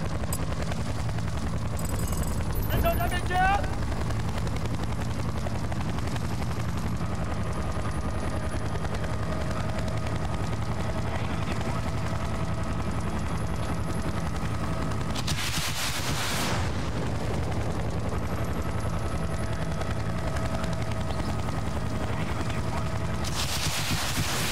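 A helicopter's rotor thumps steadily and loudly close by.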